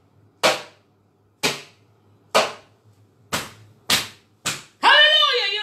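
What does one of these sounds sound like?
A staff knocks sharply on the floor several times.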